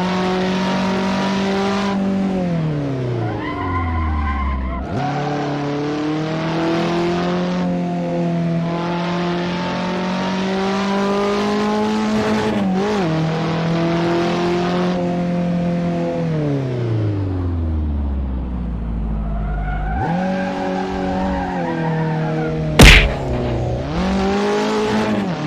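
A small car engine revs hard, its pitch climbing and dropping as it shifts gears.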